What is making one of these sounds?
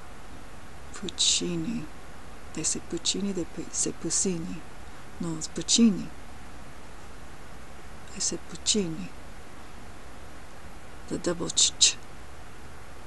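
A young woman speaks softly and close to the microphone, in short bursts with pauses.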